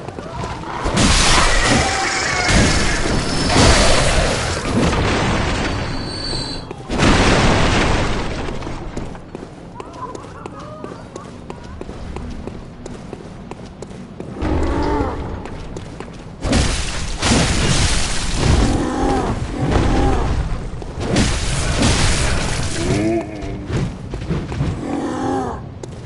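Blades slash and strike with heavy thuds.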